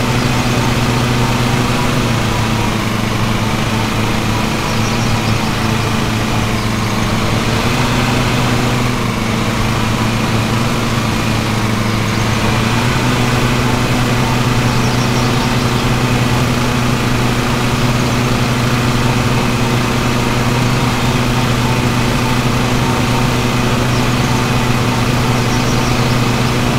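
A riding mower's engine drones steadily up close.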